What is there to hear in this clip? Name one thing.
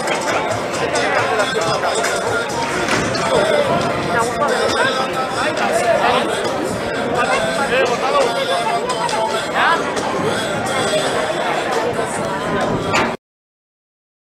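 A crowd of spectators chatters and shouts loudly in an open arena.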